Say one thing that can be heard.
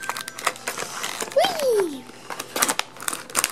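Scissors snip through plastic packaging.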